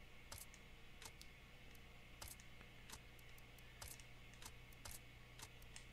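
Short sharp clicks sound repeatedly, a few times a second.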